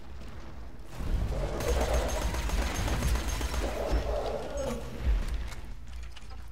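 A gun fires in rapid bursts with loud blasts.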